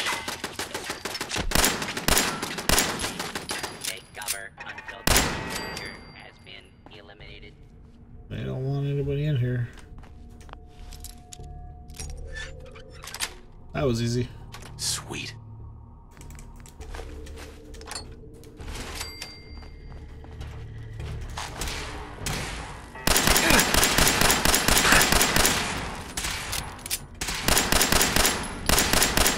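Rapid gunfire rattles and echoes.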